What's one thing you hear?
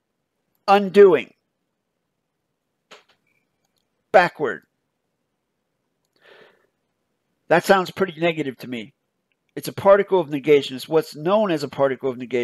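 A man speaks calmly and closely into a microphone, in short bursts with pauses.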